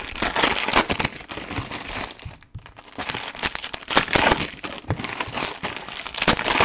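A plastic wrapper crinkles and rustles as hands tear it open.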